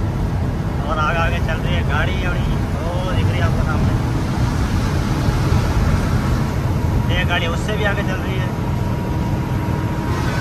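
A large vehicle's engine rumbles steadily from inside its cab.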